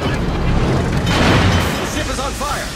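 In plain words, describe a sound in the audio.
Shells crash into the sea with heavy splashes.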